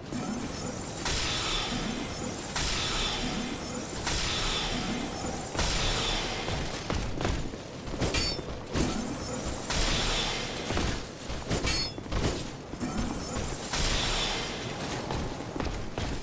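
Magic bolts whoosh and hiss in bursts, one after another.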